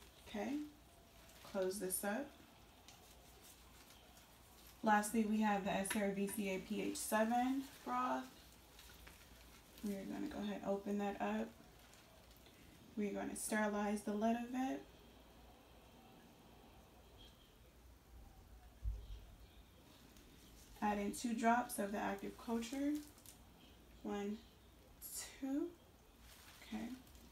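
A woman speaks calmly in short phrases close by.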